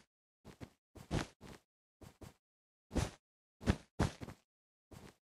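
Blocks are placed one after another with short, soft thuds.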